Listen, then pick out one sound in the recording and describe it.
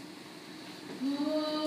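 A woman begins singing in a clear, sustained voice in a large echoing hall.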